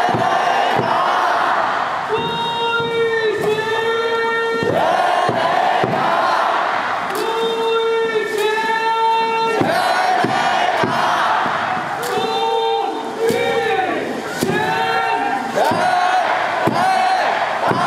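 Plastic thunder sticks clap together in a steady beat.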